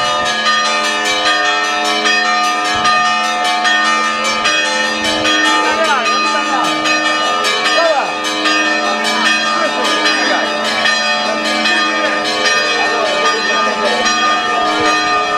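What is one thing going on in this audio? A brass band plays a lively march with a steady drumbeat.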